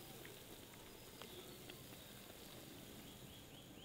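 Thick syrup pours and splats into a metal tray.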